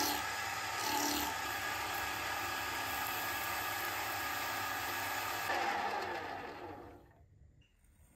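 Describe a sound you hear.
A metal lathe whirs loudly.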